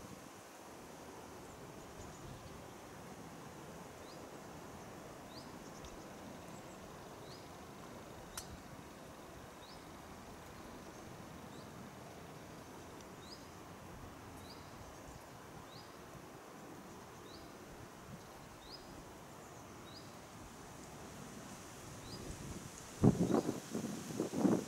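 Wind rustles softly through the trees outdoors.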